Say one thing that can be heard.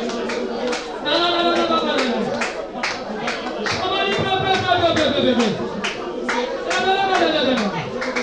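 A woman sings through a microphone.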